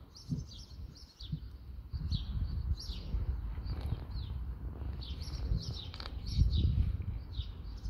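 Puppies scuffle and paw while playing.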